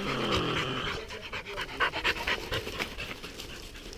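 Dry leaves rustle and crunch as a dog runs through them.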